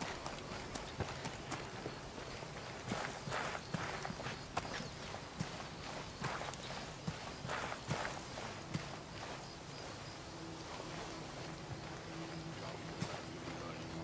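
Footsteps scuff and crunch on rocky ground.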